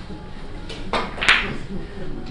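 A cue strikes a billiard ball with a sharp click.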